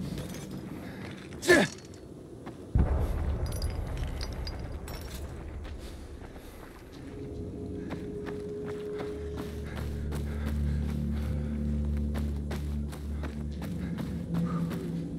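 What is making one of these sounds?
Footsteps swish and crunch through tall grass.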